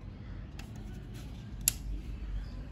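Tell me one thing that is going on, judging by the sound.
A cable plug clicks into a terminal.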